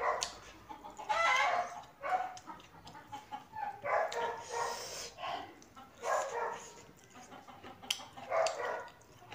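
Fingers scrape food on a plate.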